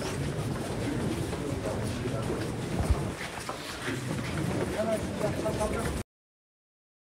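A crowd of men murmurs and talks nearby outdoors.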